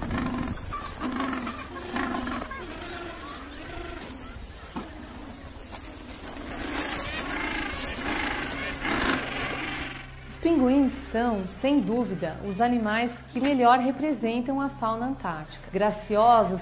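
Many penguins squawk and bray across a large colony.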